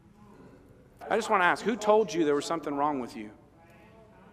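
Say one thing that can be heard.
A man speaks with animation through a microphone in a large room.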